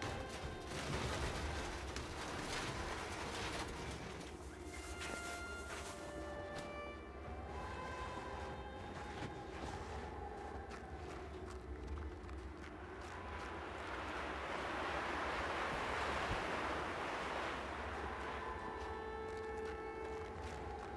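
Wind howls through a heavy snowstorm.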